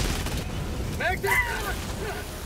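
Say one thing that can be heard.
A large fiery explosion booms.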